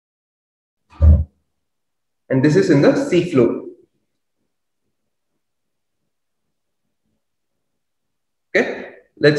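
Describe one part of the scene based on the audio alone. A man speaks in short bursts through a microphone.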